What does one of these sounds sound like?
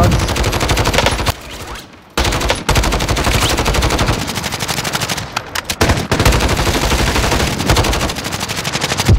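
A rifle fires in rapid bursts, close by.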